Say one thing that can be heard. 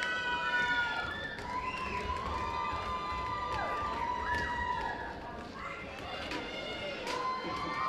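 Feet of dancers thud and shuffle on a wooden stage.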